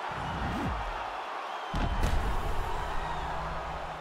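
Punches thud against a body.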